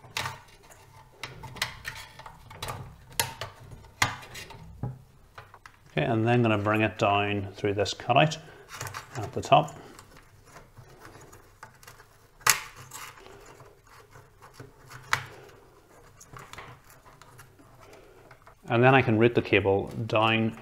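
Plastic clips click and knock against a metal case.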